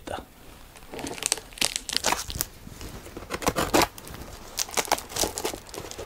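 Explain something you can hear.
A knife slices through packing tape on a cardboard box.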